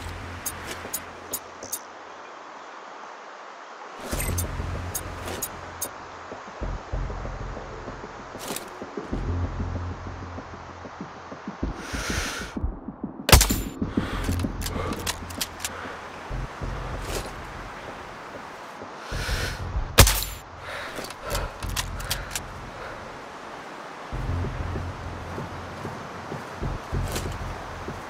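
Wind blows and rumbles outdoors.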